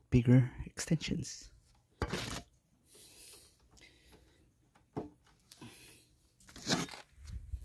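A plug and cable knock and rattle as they are handled.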